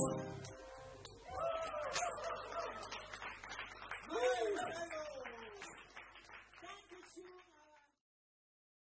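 Audience members applaud and cheer.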